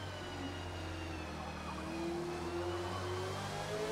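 Tyres squeal through a corner.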